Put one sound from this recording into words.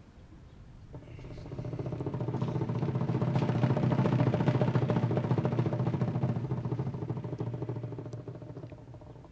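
A bass drum thumps in time with the band.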